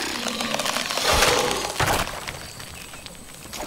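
Plastic bricks burst apart with a bright clatter.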